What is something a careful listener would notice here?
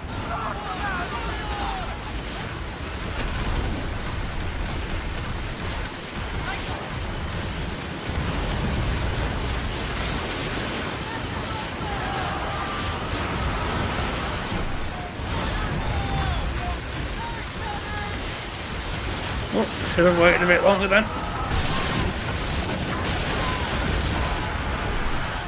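Stormy wind and crashing waves roar steadily.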